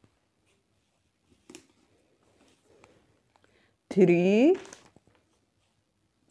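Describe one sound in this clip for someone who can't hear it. A paper card rustles softly as it is set down on a sheet of paper.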